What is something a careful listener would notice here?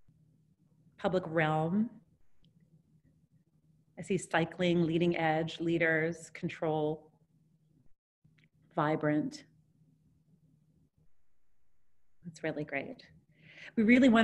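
A woman speaks calmly over an online call, in short bursts.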